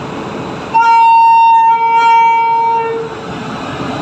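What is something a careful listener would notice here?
A train horn blares loudly nearby.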